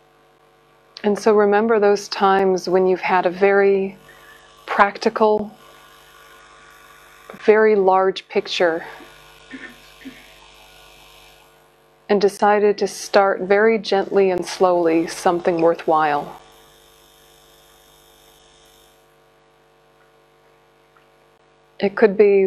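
A woman speaks calmly and slowly into a close microphone, with long pauses.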